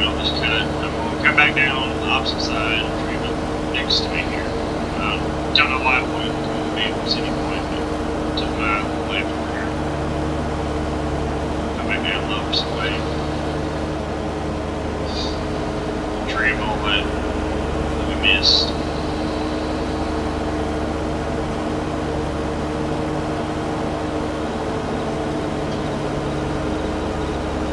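A mower whirs as it cuts grass.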